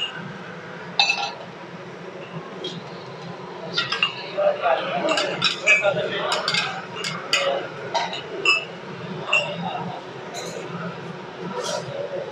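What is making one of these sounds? A metal ladle clinks against metal pots.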